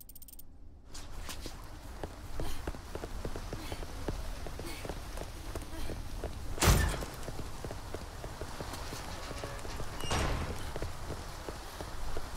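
Footsteps run on a stone floor.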